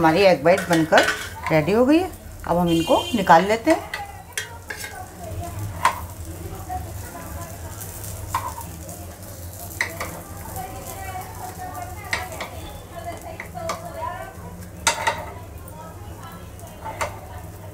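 A metal spoon clinks and scrapes against a metal pan.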